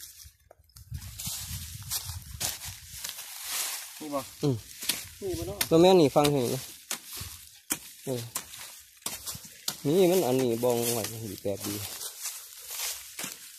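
A metal tool scrapes and thuds into dry soil.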